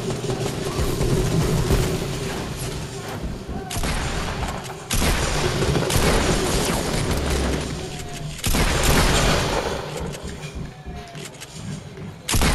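Wooden and stone walls bang into place in quick bursts.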